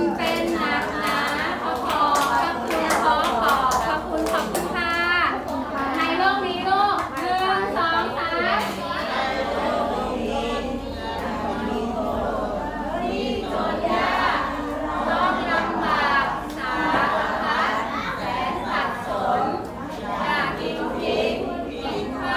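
A crowd of children and adults chants a prayer together in unison.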